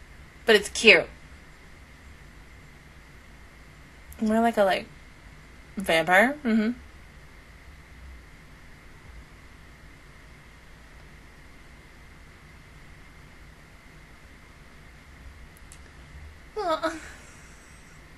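A young woman speaks briefly and cheerfully into a close microphone, with long pauses.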